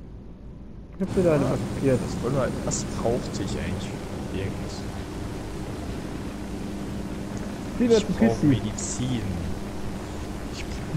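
A helicopter engine hums steadily with whirring rotor blades.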